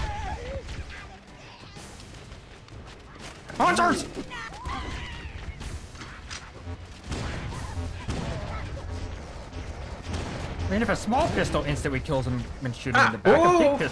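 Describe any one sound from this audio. Energy weapons fire in rapid bursts, with sharp zaps and bangs.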